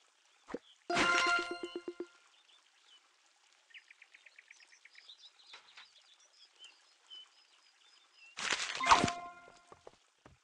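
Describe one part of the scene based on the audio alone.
A bright chime jingles twice.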